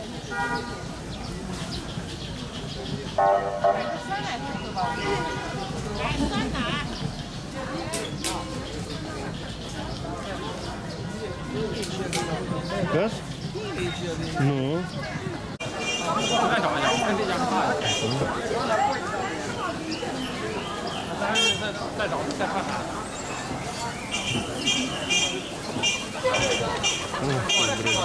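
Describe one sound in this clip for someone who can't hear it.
A busy outdoor street crowd chatters all around.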